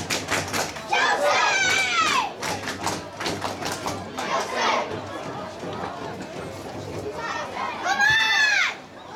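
Young fans in a crowd shout and cheer loudly.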